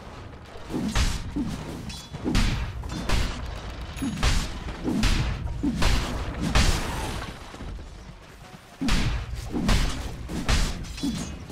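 Magic spells burst and whoosh again and again.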